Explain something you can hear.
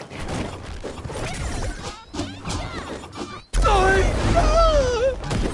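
Video game fighters clash with punchy hits and whooshes.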